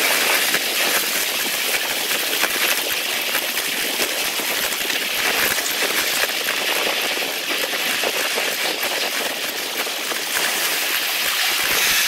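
A miniature train rumbles and clatters along the track close by.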